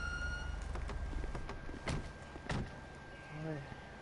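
A car door opens and shuts with a knock.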